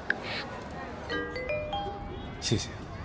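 A phone chimes with a short rising notification tone.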